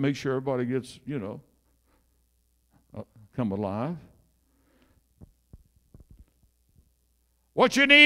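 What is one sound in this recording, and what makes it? An elderly man speaks with animation into a microphone, heard through a loudspeaker in an echoing hall.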